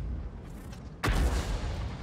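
A large explosion bursts with a roaring blast.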